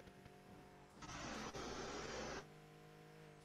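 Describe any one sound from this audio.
A turbo boost whooshes with a loud rushing hiss.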